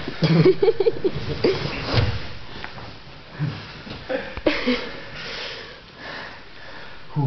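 Heavy cloth rustles and scrapes as two people grapple.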